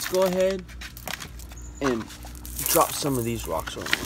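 Wet pebbles rattle and clatter as a handful is dropped onto gravelly ground.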